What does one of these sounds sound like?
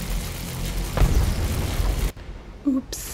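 A magic blast bursts with a loud whoosh.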